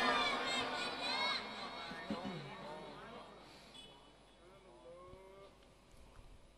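A man sings a chant into a microphone, his voice echoing through loudspeakers.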